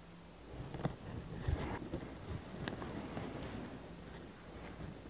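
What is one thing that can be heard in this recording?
Small plastic pieces tap lightly on a tabletop.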